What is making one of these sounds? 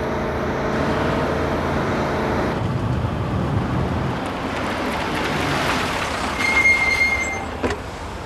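A truck engine hums as the truck drives by.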